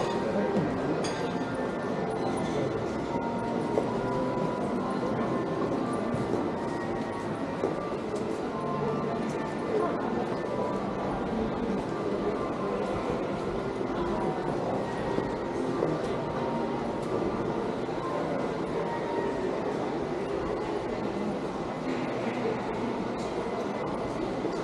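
Passers-by murmur indistinctly in the distance.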